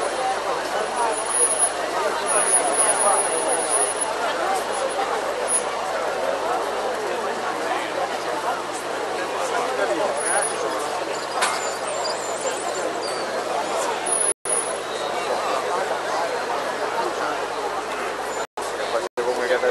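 A large outdoor crowd chatters and murmurs loudly.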